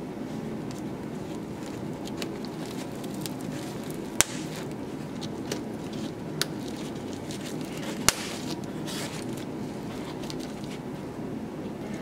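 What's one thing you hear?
Fabric rustles as hands handle it.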